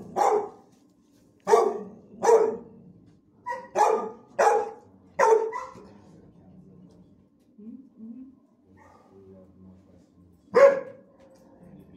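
A dog barks loudly in sharp bursts close by, echoing slightly.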